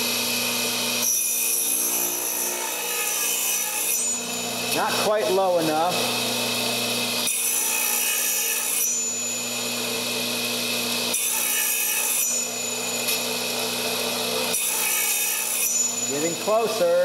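A circular saw blade cuts into wood in repeated passes.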